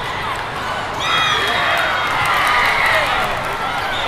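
Spectators cheer loudly.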